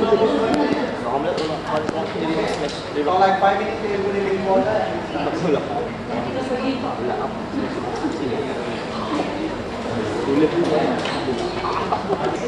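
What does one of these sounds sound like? A man talks calmly in an echoing hall.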